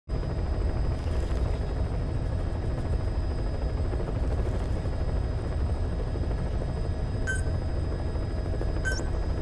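A helicopter engine drones steadily from inside the cabin.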